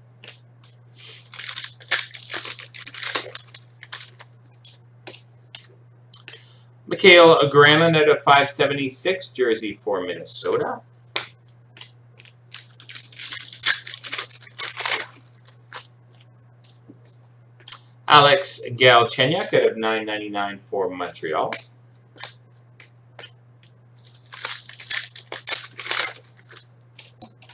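Foil wrappers crinkle and tear as card packs are ripped open.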